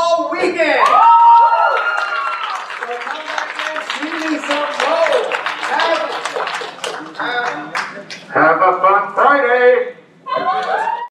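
A man speaks animatedly into a microphone.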